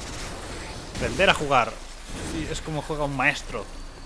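A heavy blade swings and slashes into a creature.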